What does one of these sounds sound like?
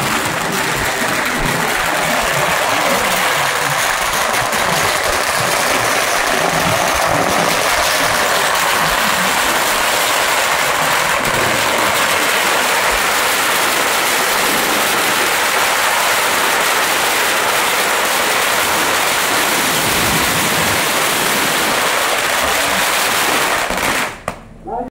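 Strings of firecrackers crackle and pop rapidly and loudly, then stop abruptly.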